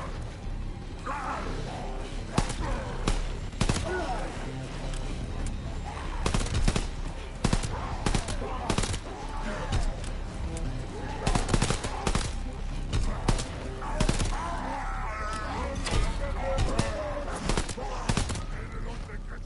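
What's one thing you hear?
Zombies growl and snarl nearby.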